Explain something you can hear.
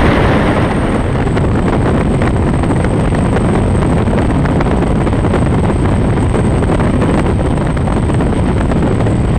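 Water sprays up behind a speeding boat.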